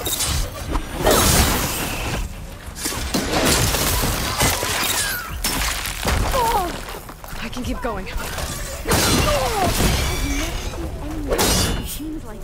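Metal clangs as a spear strikes a machine.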